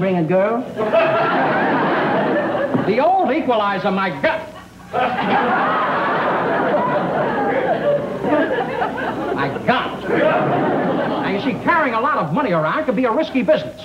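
A man talks with animation, heard close.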